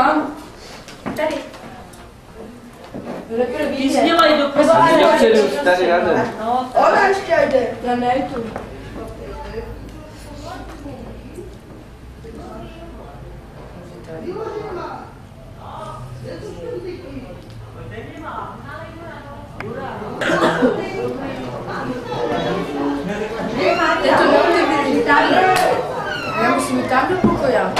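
Women talk and chatter nearby with animation.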